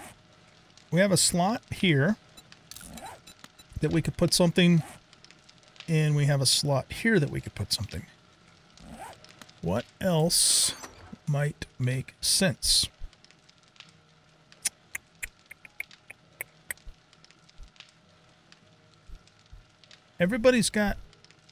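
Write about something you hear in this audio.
A middle-aged man speaks with animation close to a microphone, in short bursts.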